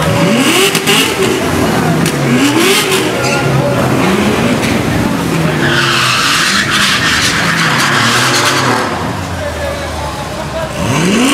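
Powerful car engines rev loudly, rising and falling in pitch.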